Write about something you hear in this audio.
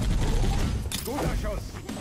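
Energy weapons zap.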